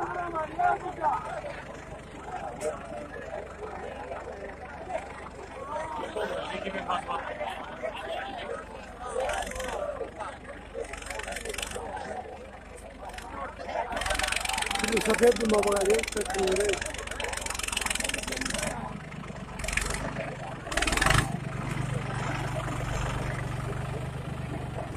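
A tractor engine runs with a steady low rumble.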